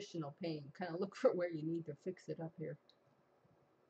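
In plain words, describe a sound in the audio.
An elderly woman speaks calmly and close to a microphone.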